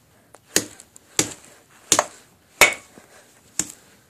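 A bar of soap cracks and snaps apart on a hard floor.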